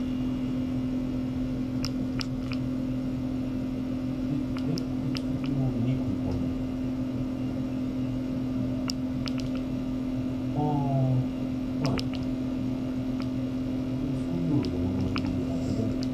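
A low, steady electronic hum drones throughout.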